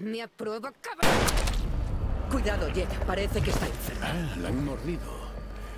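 A woman warns in a worried voice.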